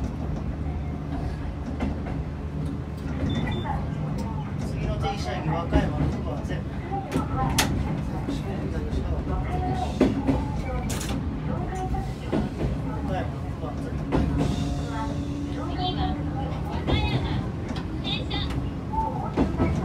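An electric train rumbles along the track, heard from inside the cab.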